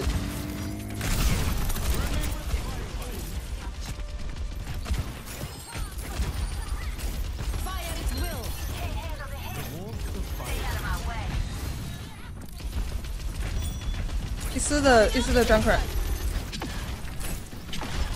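Fiery explosions burst and roar.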